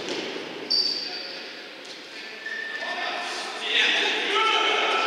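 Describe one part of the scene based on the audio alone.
Sneakers squeak sharply on a court floor in a large echoing hall.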